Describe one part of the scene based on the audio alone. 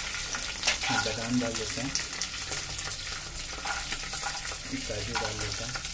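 Peanuts drop and clatter into a pan.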